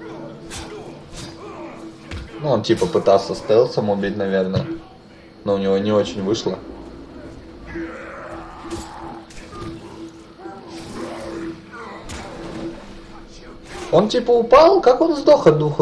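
A blade slashes and strikes flesh in quick blows.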